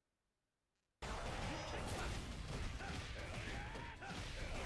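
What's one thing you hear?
Video game battle effects crash and whoosh steadily.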